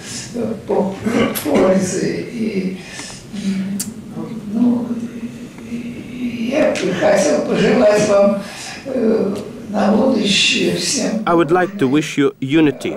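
An elderly man speaks slowly and deliberately into a microphone.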